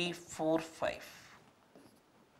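A man speaks briefly with animation, close by.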